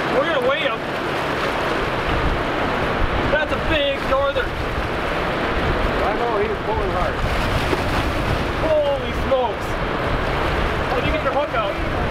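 Wind blows hard outdoors.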